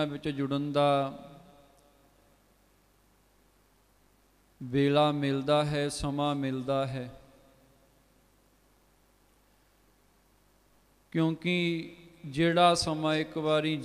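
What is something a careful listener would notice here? A man sings through a microphone in bursts, with pauses between.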